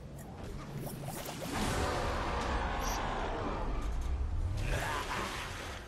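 Water splashes and churns.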